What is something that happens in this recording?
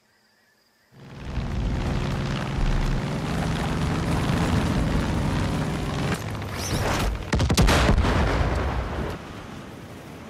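A single-engine propeller plane's engine drones loudly.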